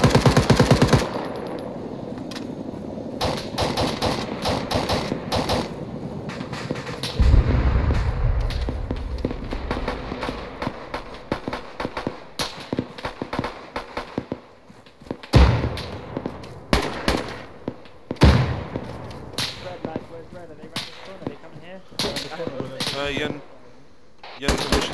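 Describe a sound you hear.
Distant gunshots crack and echo outdoors.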